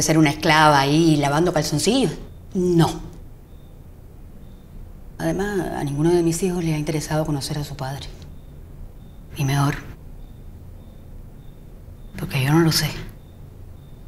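An older woman speaks nearby in a calm, conversational voice.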